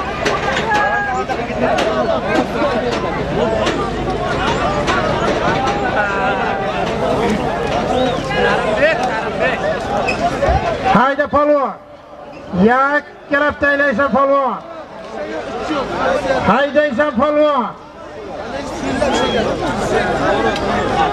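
A large crowd of men shouts and yells outdoors.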